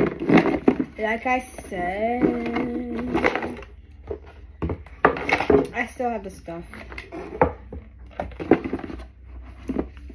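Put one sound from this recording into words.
A cardboard box lid scrapes and thumps as it is opened.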